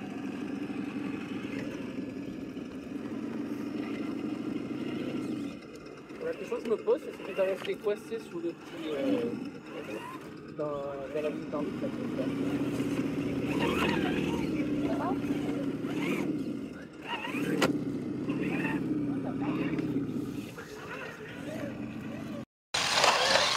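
A small electric motor whines as a toy truck crawls over rocks.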